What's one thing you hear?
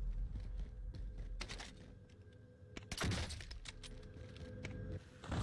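Gunshots fire in short bursts.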